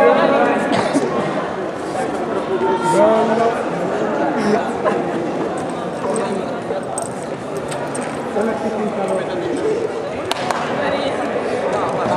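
A crowd of young people chatter and call out excitedly in an echoing hall.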